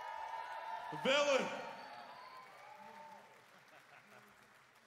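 A young man shouts through a microphone.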